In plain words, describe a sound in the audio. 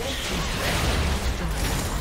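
A video game tower explodes and crumbles.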